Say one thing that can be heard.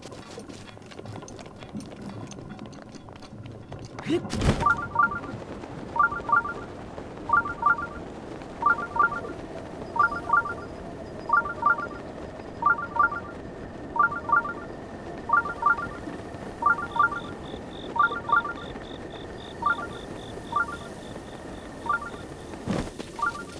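Wind rushes steadily past a glider.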